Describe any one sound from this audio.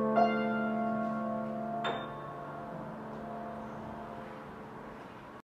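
A piano plays chords that ring out and slowly fade.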